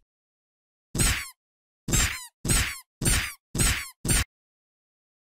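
Mallets strike in a quick run of sharp knocks.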